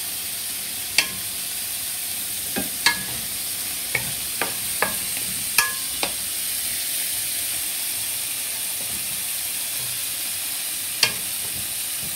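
A spatula scrapes and knocks against a metal pan.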